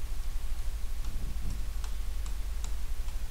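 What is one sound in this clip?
A marker taps against a board.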